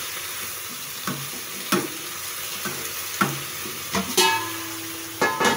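A metal spatula scrapes and clatters against a frying pan.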